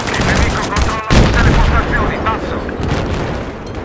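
An explosion booms and rumbles.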